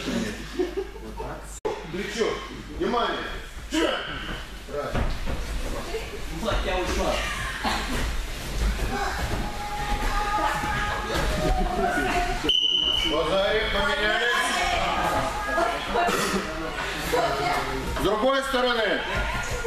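A man speaks loudly to a group in an echoing hall.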